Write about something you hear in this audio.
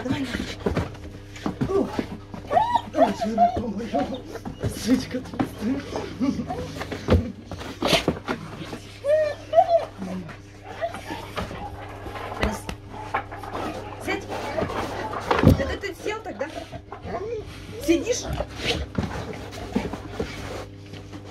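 A young woman talks playfully, close by.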